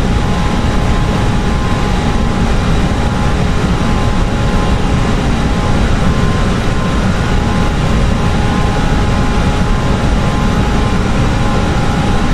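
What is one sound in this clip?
Airliner engines and airflow drone steadily inside a cockpit.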